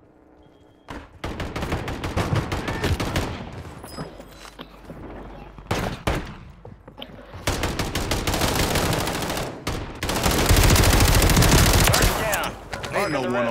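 Rapid gunfire cracks and booms up close.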